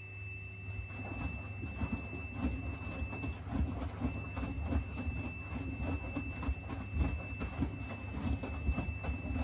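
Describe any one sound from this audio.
Laundry tumbles and sloshes in a washing machine drum.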